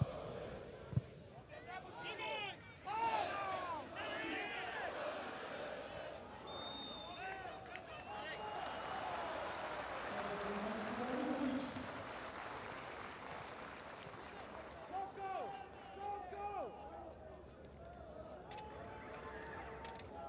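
A crowd of spectators murmurs and cheers in a large open stadium.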